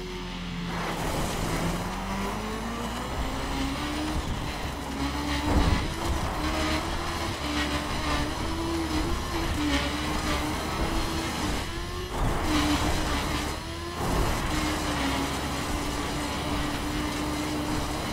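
Tyres rumble over a gravel track.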